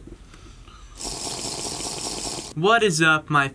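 A young man gulps water from a plastic bottle.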